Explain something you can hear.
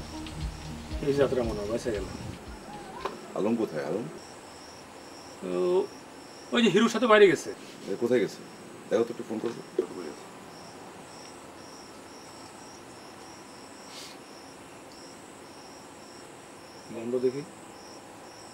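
A middle-aged man speaks with strain, close by.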